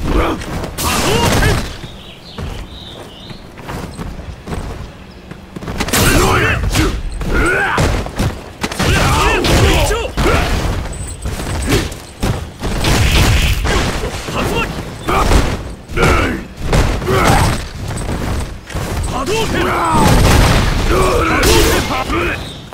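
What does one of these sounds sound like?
An energy blast whooshes and crackles.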